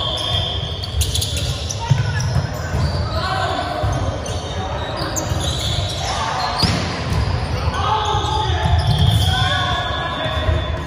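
Volleyballs thump as players hit them, echoing in a large hall.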